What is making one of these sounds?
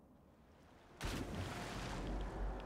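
Something splashes heavily into water.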